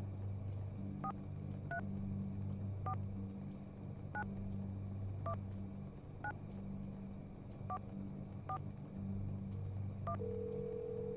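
Telephone keys beep one by one as a number is dialled.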